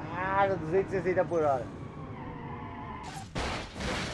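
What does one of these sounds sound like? A racing car engine roars at speed.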